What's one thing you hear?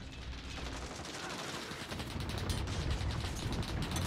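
A weapon is reloaded with metallic clicks.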